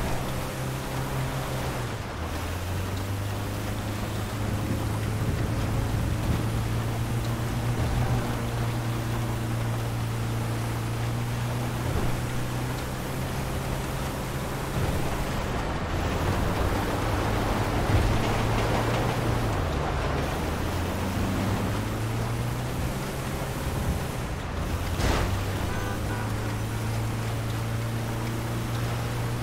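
A van engine hums steadily, its pitch shifting now and then as it drives.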